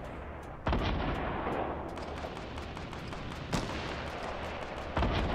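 Gunshots ring out loudly, a few seconds apart.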